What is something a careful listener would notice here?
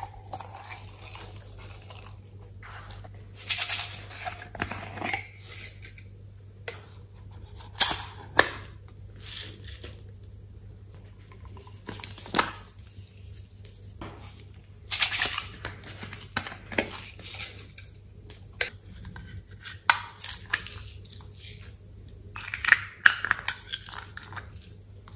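Thick slime squelches and plops into a tray.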